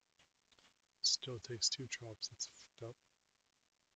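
A man speaks briefly with animation into a close microphone.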